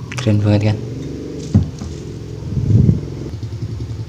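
A glass bottle is set down on a wooden table with a thud.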